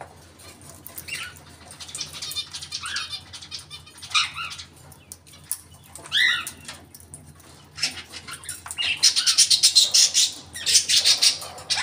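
A bird flutters and scrabbles against a wire cage.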